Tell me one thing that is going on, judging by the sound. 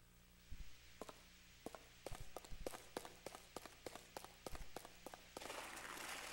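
Footsteps patter quickly on a hard stone floor.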